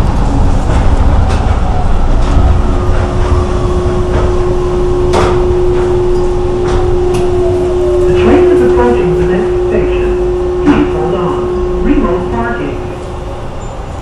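A train's motor whines down in pitch as the train slows.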